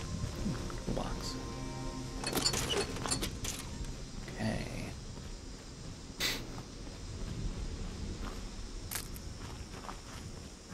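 Footsteps crunch through dry leaves.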